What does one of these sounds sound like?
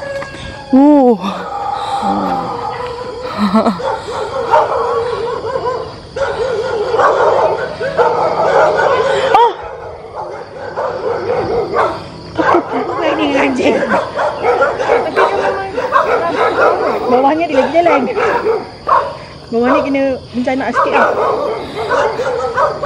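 Several dogs bark loudly and repeatedly nearby.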